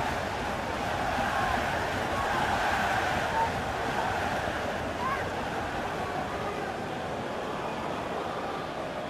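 A crowd cheers loudly after a goal.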